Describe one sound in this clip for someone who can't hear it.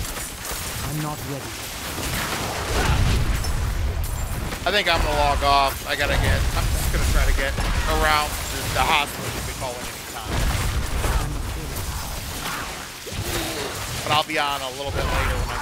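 Lightning spells crackle and blast repeatedly.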